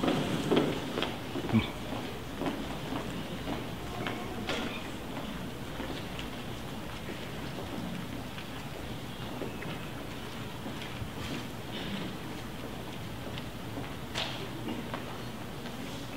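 Footsteps shuffle on a wooden stage.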